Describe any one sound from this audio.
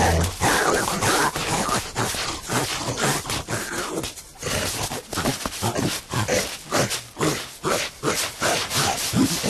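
Animals scuffle and thrash in a struggle on dry ground.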